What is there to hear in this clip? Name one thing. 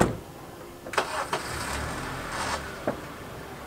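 A car engine starts up.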